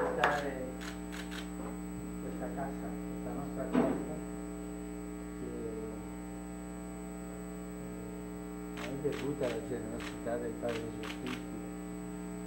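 An elderly man answers softly.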